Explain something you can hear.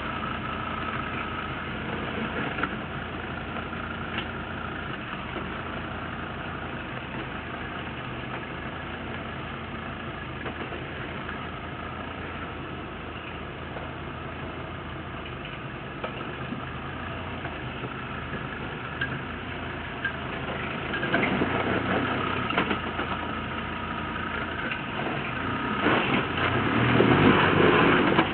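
An off-road vehicle's engine rumbles steadily at low speed, then revs harder.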